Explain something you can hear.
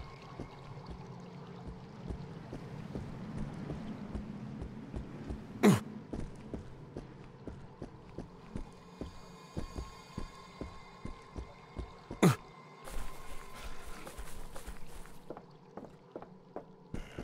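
Footsteps run quickly over stone paving.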